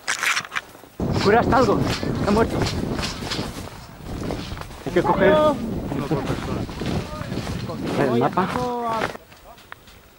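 A man talks loudly nearby, outdoors.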